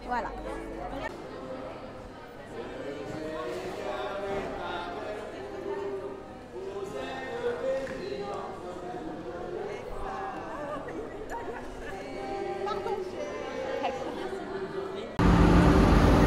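An accordion plays a lively tune.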